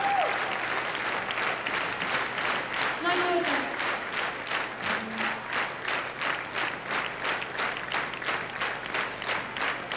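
A large crowd cheers and shouts.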